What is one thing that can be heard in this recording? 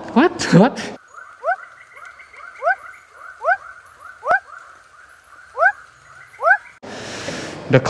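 A frog calls with short, rising chirps again and again.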